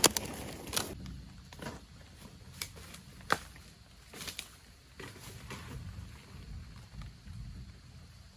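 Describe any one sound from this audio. Rubber boots crunch and snap through dry leaves and bamboo stalks.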